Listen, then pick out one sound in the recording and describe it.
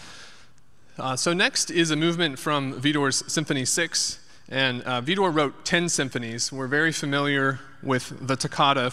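A young man speaks calmly into a microphone in a large echoing hall.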